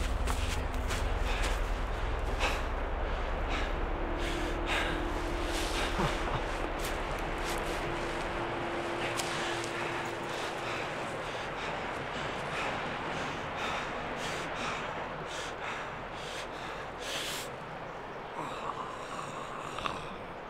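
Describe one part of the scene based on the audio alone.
A man sobs and breathes heavily, close by.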